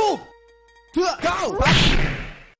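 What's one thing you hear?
A video game's sword slashes with a sharp whoosh.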